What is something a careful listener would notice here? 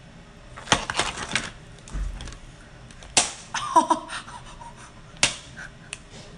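Crab shells crack and snap close to the microphone.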